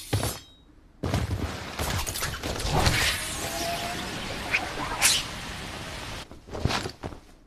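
A grappling line whooshes and zips through the air.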